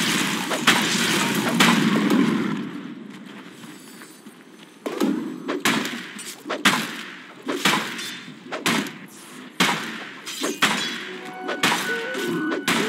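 Heavy game weapon blows strike again and again in a fight.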